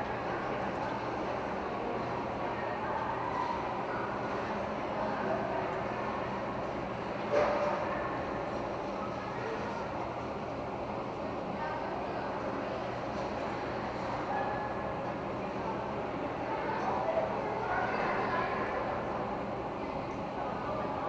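Spectators chatter quietly in a large echoing hall.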